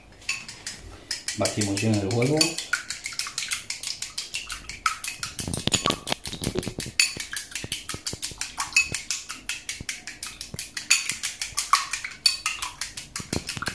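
Chopsticks beat eggs rapidly in a glass bowl.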